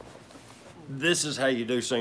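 A middle-aged man speaks up close to a microphone.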